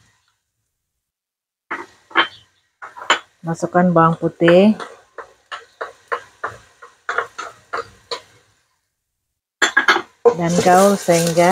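A wooden spatula scrapes and taps against a metal pot.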